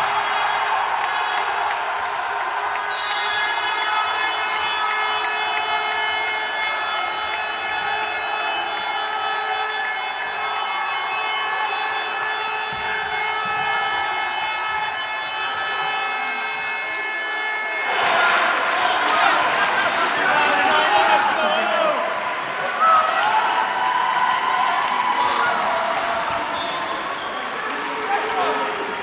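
A large crowd cheers in an echoing hall.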